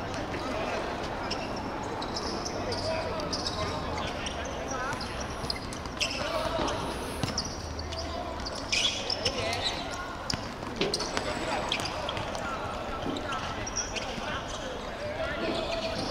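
Young men shout and call out to each other across an open court.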